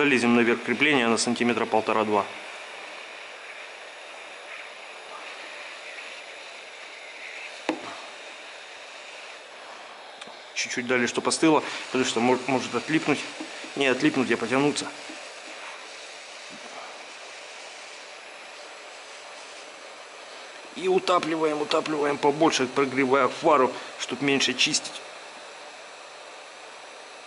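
A heat gun blows with a steady hiss.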